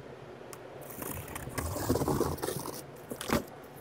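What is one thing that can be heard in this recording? A utility knife slices through packing tape.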